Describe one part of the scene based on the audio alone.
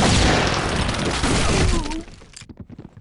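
A smoke grenade hisses loudly.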